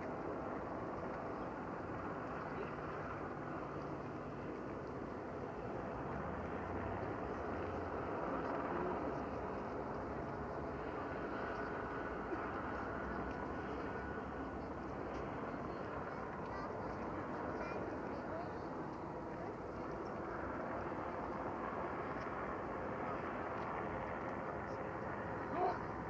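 A large seaplane's engines roar steadily from across the water.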